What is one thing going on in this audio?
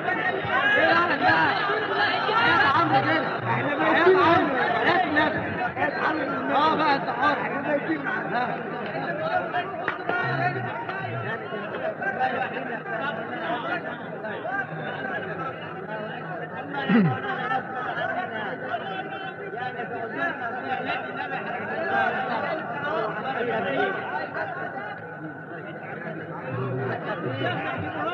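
A man recites in a long, melodic chanting voice through a microphone.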